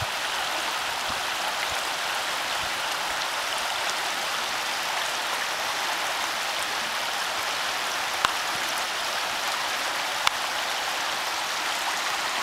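A swollen creek rushes and churns steadily close by.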